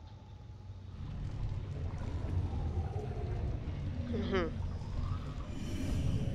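A fire roars with a low rumble.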